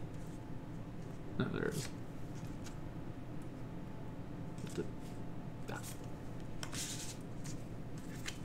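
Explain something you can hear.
Playing cards slide and rustle as hands sort them on a table.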